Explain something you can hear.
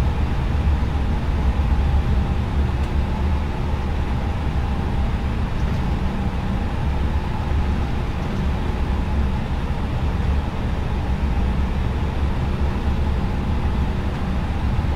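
A jet airliner's engines hum at taxi power, heard from inside the cockpit.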